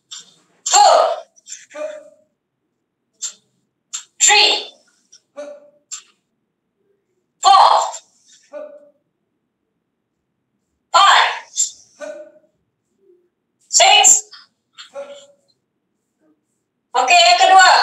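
A young woman shouts short sharp cries over an online call.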